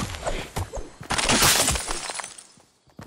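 A pickaxe strikes with a sharp crunch.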